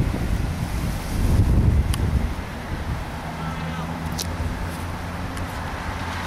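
A car drives slowly along the road.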